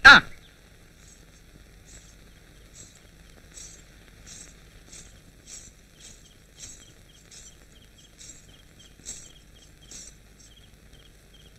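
Anklet bells jingle softly with each step.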